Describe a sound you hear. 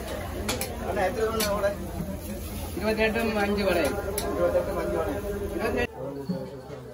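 A wood fire crackles beneath a griddle.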